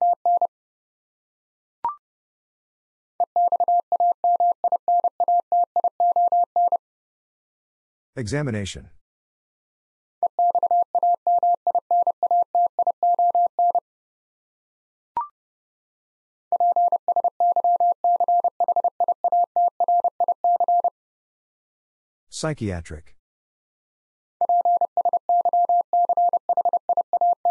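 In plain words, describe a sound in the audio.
A telegraph key taps out rapid Morse code beeps in a steady tone.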